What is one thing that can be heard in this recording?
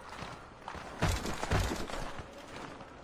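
Heavy thuds and scuffling break out in a brief brawl.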